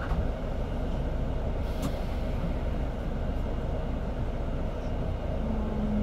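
A bus engine idles nearby with a low, steady rumble.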